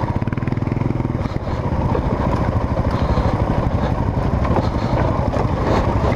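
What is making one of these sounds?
A dirt bike engine chugs loudly up close.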